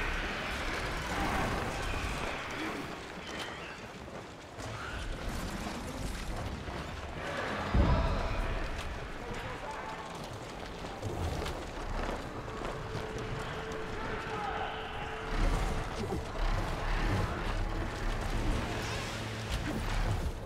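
Wind rushes past steadily during a fast flight.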